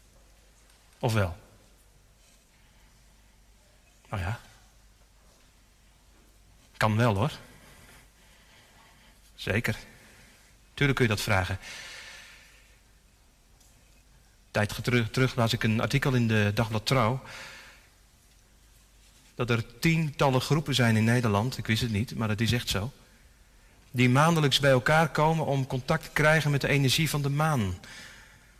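A man speaks calmly into a microphone with long pauses, echoing in a large hall.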